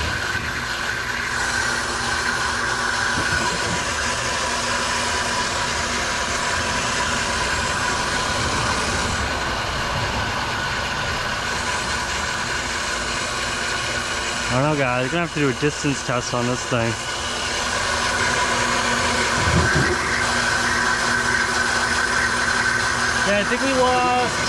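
A pump motor hums steadily nearby.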